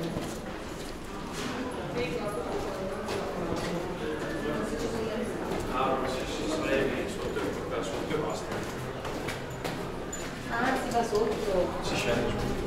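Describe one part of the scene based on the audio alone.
Young women chat nearby.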